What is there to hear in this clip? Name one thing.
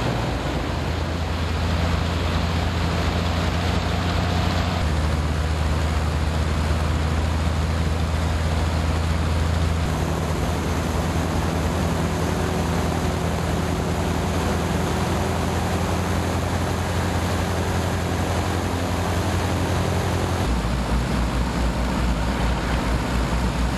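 Propeller blades thrum rapidly.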